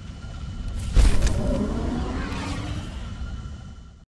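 A spaceship jumps away with a loud rushing whoosh that slowly fades.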